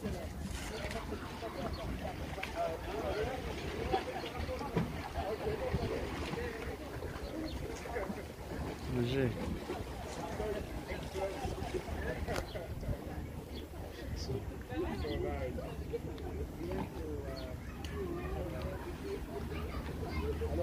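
Men and women chat casually nearby outdoors.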